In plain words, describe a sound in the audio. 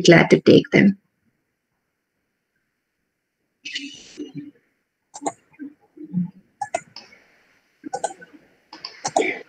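A woman speaks through an online call.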